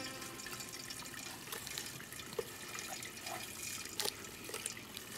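Dishes clink in a sink.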